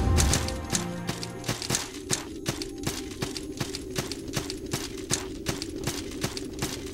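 Quick footsteps patter at an even pace.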